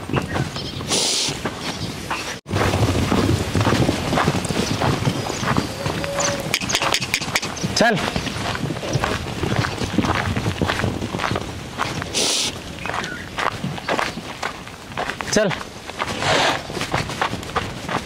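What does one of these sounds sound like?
Horses' hooves thud and scuff on dry dirt.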